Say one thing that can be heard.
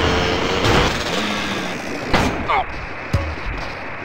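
A motorbike crashes with a thud.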